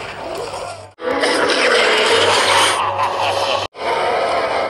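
An explosion bursts with a loud crackle.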